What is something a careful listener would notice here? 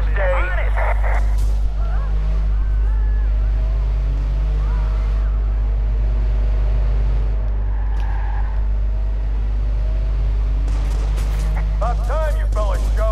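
A car engine hums steadily as a car drives along a road.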